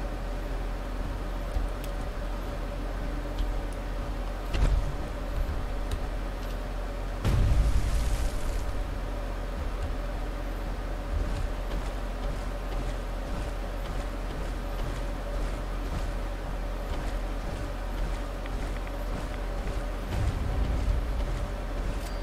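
Heavy metal footsteps thud on the ground.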